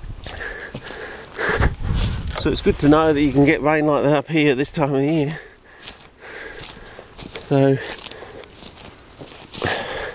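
Stiff grass brushes and rustles against legs.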